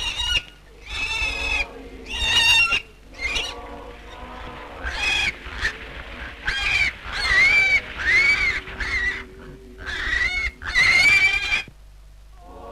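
A young woman calls out loudly, with breaks between cries.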